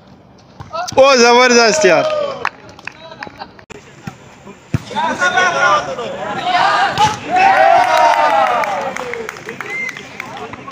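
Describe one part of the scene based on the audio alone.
A crowd of young men cheers loudly.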